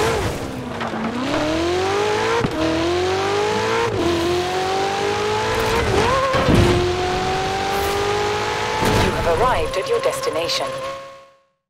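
A sports car engine roars, climbing in pitch and dropping with each gear change.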